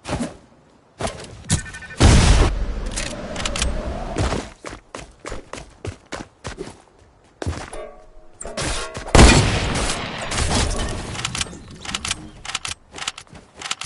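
Rapid gunshots crack in short bursts.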